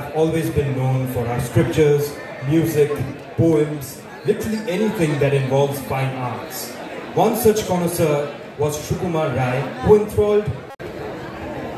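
A man sings loudly through loudspeakers outdoors.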